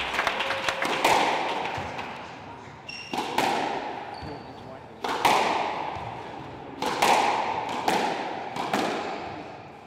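A squash ball smacks hard against the walls, ringing in an echoing court.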